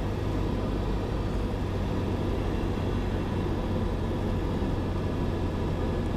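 Wheels rumble along a paved runway.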